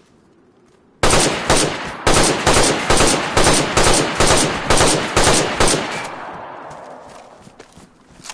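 A rifle fires a rapid burst of loud shots that echo and slowly fade.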